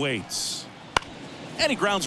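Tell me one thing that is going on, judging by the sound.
A wooden bat cracks against a baseball.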